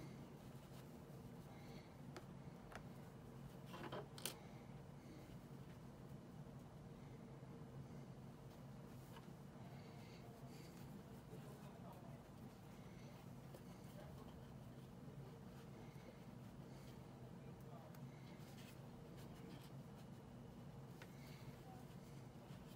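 Thread rustles softly as hands stitch a small plush toy.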